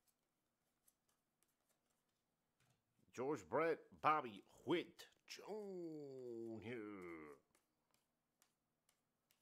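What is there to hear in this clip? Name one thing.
Trading cards flick and slide softly against each other.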